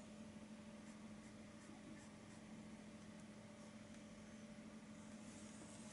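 A paintbrush strokes softly across canvas.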